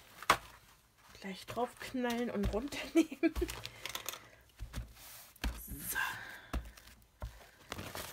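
A paper towel rustles and crinkles under pressing hands.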